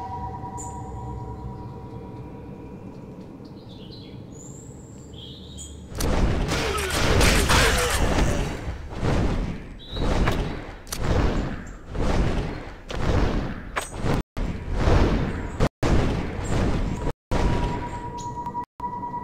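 Large wings flap steadily in the wind.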